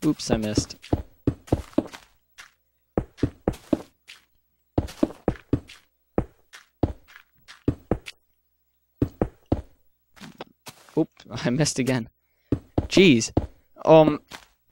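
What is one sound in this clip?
Blocks thud and crunch in quick, uneven bursts as they are placed and broken in a video game.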